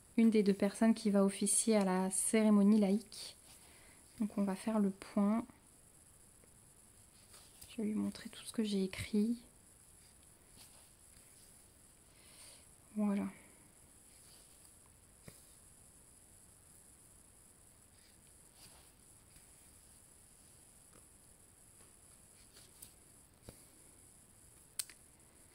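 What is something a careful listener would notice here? Thread rasps softly as it is pulled through stiff fabric.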